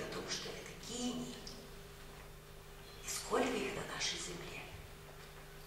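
A middle-aged woman speaks into a microphone in an echoing hall, in short bursts with pauses.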